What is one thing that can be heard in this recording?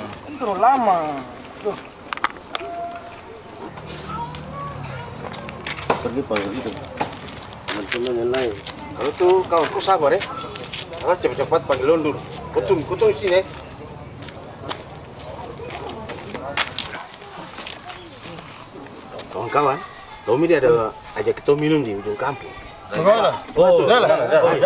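Men talk outdoors in a relaxed group conversation.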